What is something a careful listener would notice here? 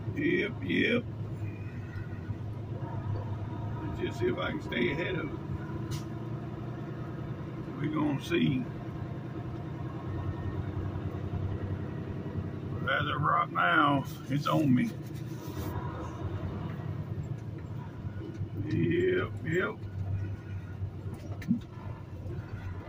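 A truck engine rumbles steadily at low speed.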